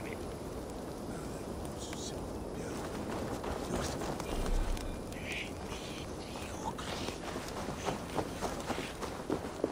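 Footsteps crunch over grass and dirt.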